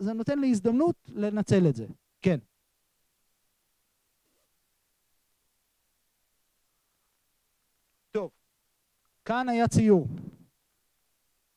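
A man speaks with animation through a microphone and a loudspeaker, with long pauses.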